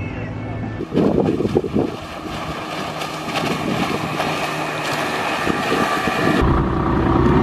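A small outboard motor drones across the water.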